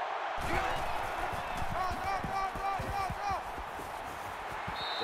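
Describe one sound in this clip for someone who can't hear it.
Football players' pads clash in a tackle.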